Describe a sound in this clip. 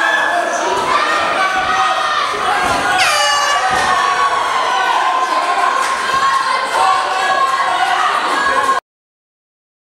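A crowd of spectators cheers and shouts in an echoing indoor hall.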